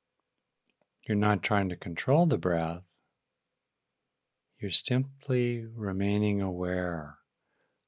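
A middle-aged man speaks calmly and closely into a microphone.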